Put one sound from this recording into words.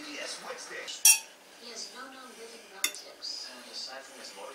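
A fork scrapes and clinks against a plate.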